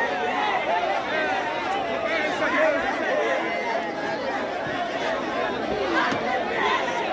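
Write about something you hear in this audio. A large crowd of men and women talk and shout over one another outdoors.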